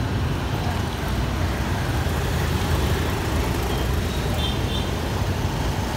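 Street traffic rumbles steadily outdoors.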